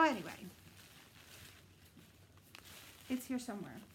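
Wrapping paper rustles and crinkles.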